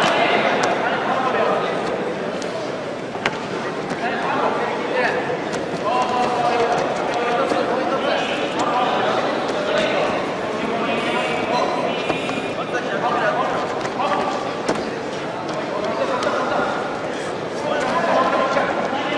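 Wrestlers' feet scuff and thump on a wrestling mat.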